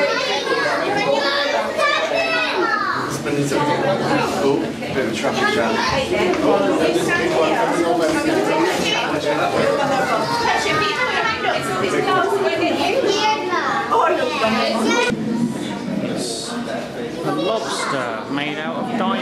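A crowd of children and adults chatter and call out nearby in an echoing space.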